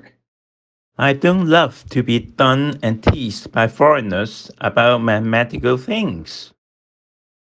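A man answers in a measured, slightly annoyed tone.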